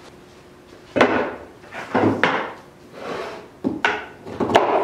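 Wooden pieces knock against a table.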